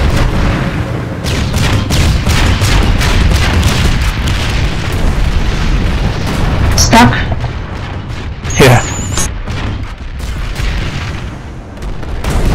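A heavy gun fires rapid shots.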